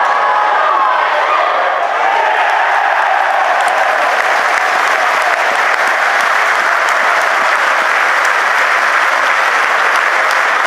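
A large crowd murmurs and chants steadily in an open stadium.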